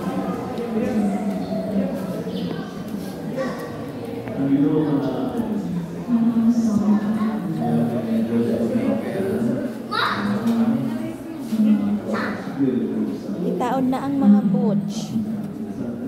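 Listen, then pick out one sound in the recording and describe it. Several men and women talk casually nearby.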